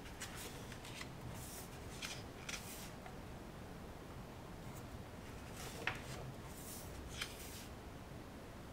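Paper pages rustle and flip as a book is leafed through.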